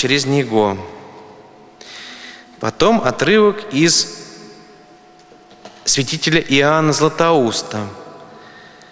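A man speaks calmly into a microphone in a reverberant hall, in short phrases with pauses.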